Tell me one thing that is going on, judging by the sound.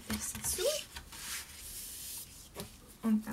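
Paper slides and rustles under hands.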